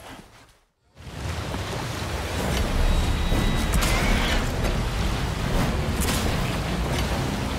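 Water splashes against a moving boat.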